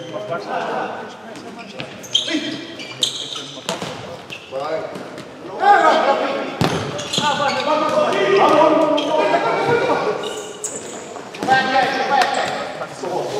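Sneakers squeak on a hard indoor court.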